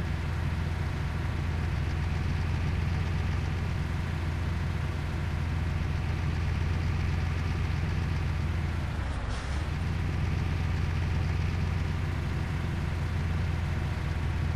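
A truck engine hums steadily with a low drone.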